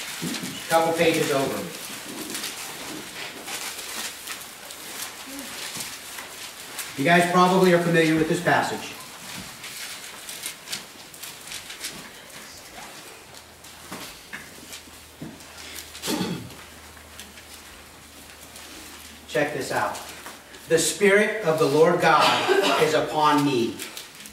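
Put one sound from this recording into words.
A middle-aged man speaks slowly into a microphone, heard through loudspeakers in an echoing hall.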